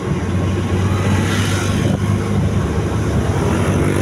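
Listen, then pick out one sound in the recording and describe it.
A motorcycle passes close by.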